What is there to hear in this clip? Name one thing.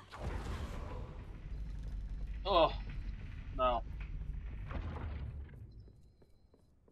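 A magic spell swirls and roars with a deep rumble.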